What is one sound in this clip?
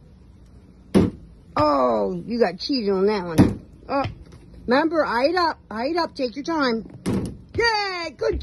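A ball bounces with dull thuds on a wooden deck.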